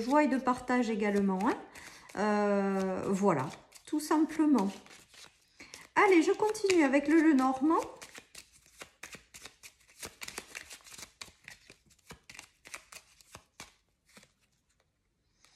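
Playing cards riffle and slap together as they are shuffled by hand.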